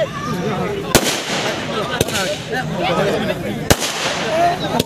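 Fireworks bang loudly a few times.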